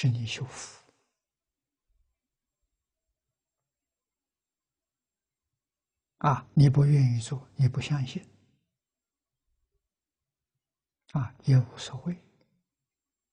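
An elderly man speaks calmly through a close microphone, with long pauses.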